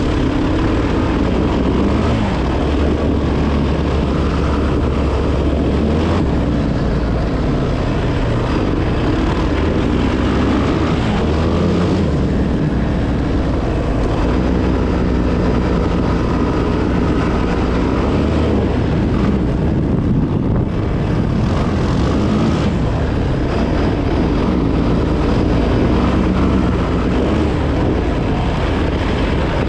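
Tyres crunch and rumble over a gravel dirt track.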